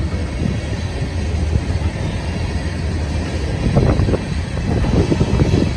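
Train wheels clatter and clank over rail joints.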